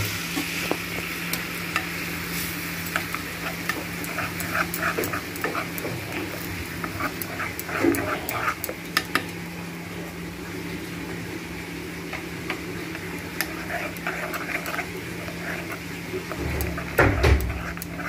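A spoon scrapes and clinks against a metal pan.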